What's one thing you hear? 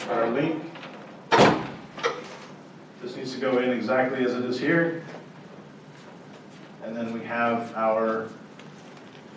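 A man speaks into a microphone in a large room, explaining with animation.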